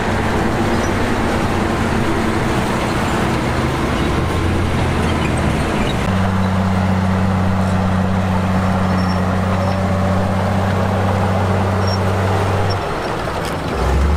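A bulldozer engine rumbles steadily.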